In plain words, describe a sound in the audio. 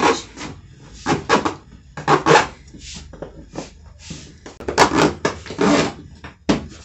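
A zipper on a suitcase is pulled open in quick rasping bursts.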